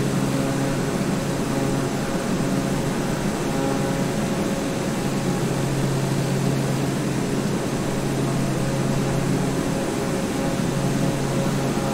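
A single-engine turboprop drones steadily in level cruise.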